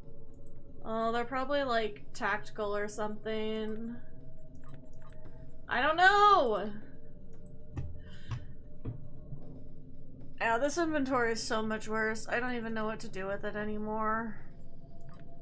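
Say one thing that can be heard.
A young woman talks with animation close to a microphone.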